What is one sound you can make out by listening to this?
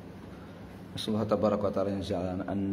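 A man recites in a melodic chanting voice close to a microphone.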